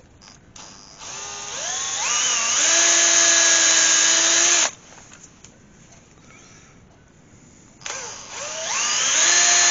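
An electric drill whirs up to speed, runs steadily, then stops.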